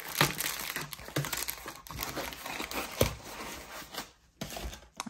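Cardboard and paper packaging rustle and crinkle under handling.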